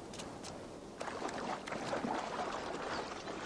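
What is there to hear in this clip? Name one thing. Water splashes as someone wades through a shallow pool.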